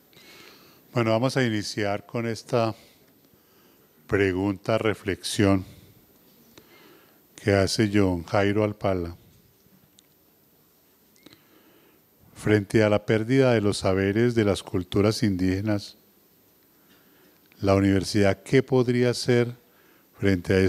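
An elderly man speaks into a microphone in bursts, heard through loudspeakers in a large hall.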